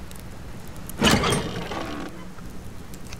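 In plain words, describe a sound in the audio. A heavy metal door opens with a loud scrape.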